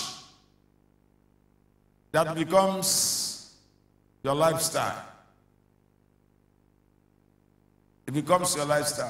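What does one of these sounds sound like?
A middle-aged man speaks with animation into a microphone, heard through loudspeakers in short bursts with pauses.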